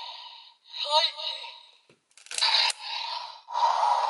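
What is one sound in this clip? Plastic parts click and snap as a toy is folded.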